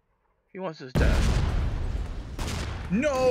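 Game explosions crackle and boom.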